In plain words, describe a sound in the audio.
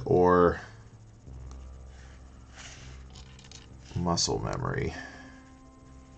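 Small plastic pieces click and rustle in hands.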